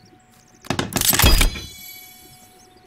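A heavy wooden log thuds and clatters into place.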